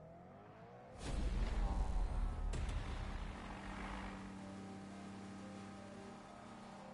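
A car engine revs loudly nearby.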